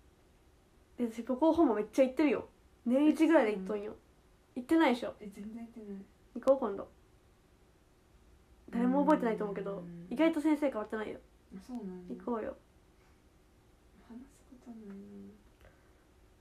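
A young woman speaks softly and with emotion, close to a microphone.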